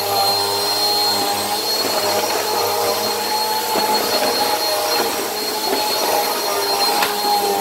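A vacuum cleaner rolls across a hard floor.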